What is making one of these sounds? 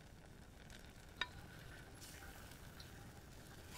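A spoon stirs thick sauce.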